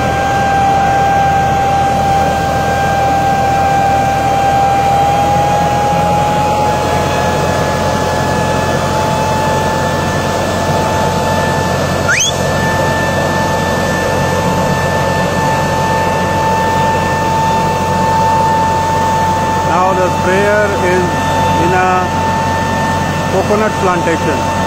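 A tractor engine runs with a steady loud drone.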